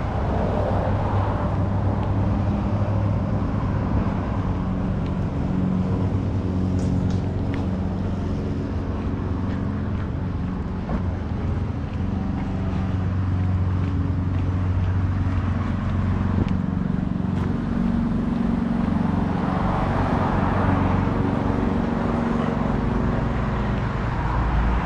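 Footsteps walk steadily on a pavement outdoors.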